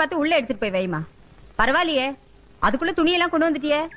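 A woman sings with a wavering voice.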